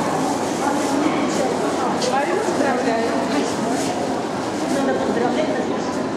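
A man talks calmly with a woman close by.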